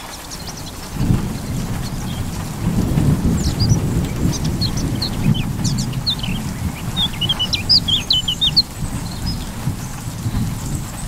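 Wind gusts across an open field, rustling the crops.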